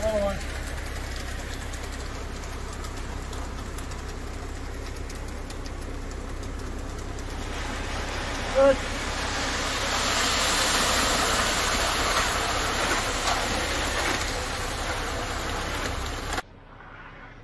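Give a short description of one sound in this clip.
A truck engine rumbles steadily close by.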